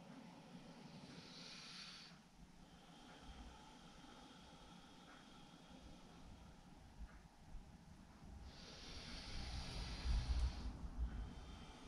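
A woman breathes out slowly and deeply, close by.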